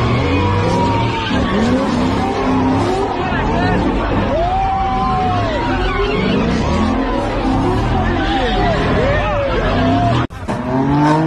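A crowd shouts and cheers loudly.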